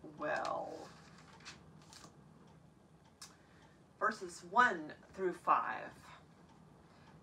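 An older woman speaks clearly and expressively close by.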